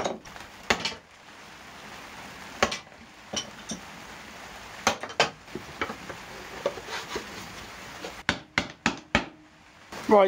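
Wooden boards knock and clatter against a workbench.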